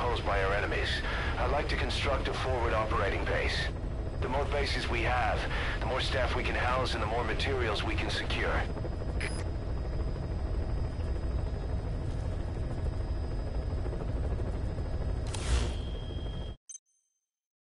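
A low engine drone rumbles steadily, then cuts off.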